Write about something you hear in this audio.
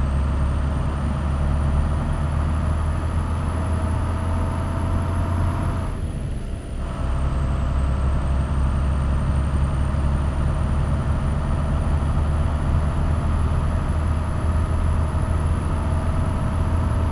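A heavy truck engine drones steadily, dipping briefly once as it shifts gear.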